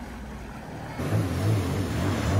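A personal watercraft engine drones further off across the water.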